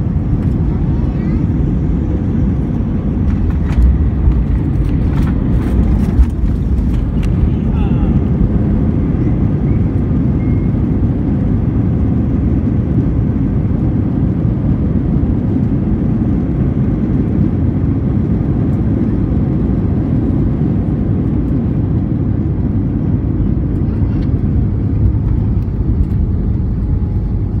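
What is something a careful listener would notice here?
A jet's engines roar loudly and steadily from inside the cabin.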